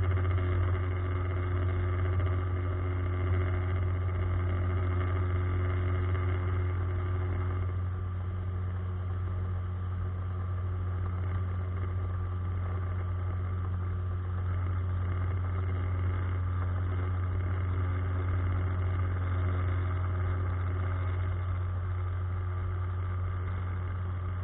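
A small boat motor hums steadily.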